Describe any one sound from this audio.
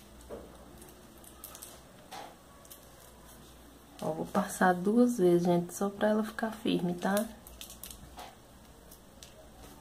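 Small glass beads click softly together.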